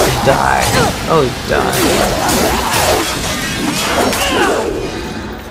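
Blades slash and strike with wet impacts.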